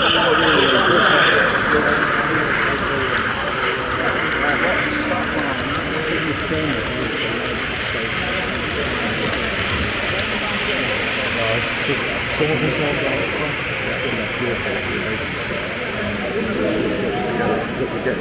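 A crowd of people chatters all around.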